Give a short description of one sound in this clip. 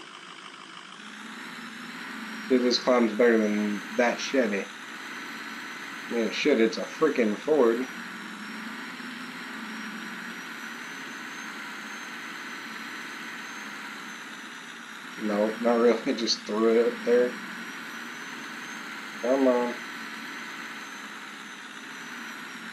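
A large truck engine rumbles steadily.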